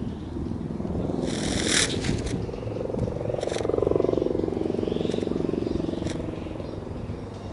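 A kite whooshes and roars as it swoops close overhead.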